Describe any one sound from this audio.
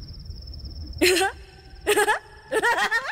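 A woman laughs loudly and eerily.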